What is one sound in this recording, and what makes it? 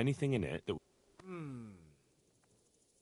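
A second man answers briefly in a low, calm voice.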